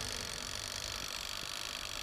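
A heater's dial clicks as a hand turns it.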